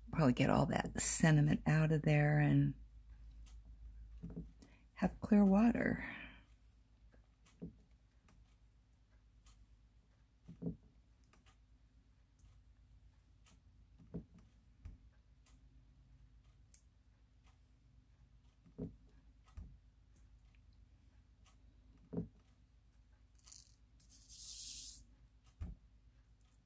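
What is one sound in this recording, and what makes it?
A small tool taps softly on a hard surface now and then.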